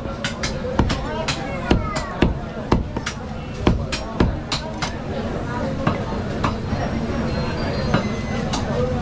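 A cleaver chops through meat with sharp thuds.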